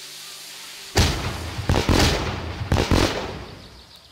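Fireworks bang and crackle loudly inside a car.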